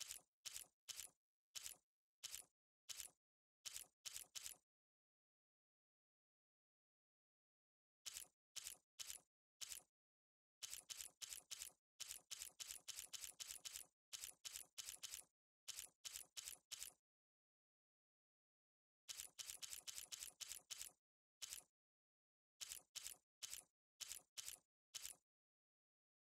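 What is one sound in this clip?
Soft menu clicks tick in quick bursts as items scroll past.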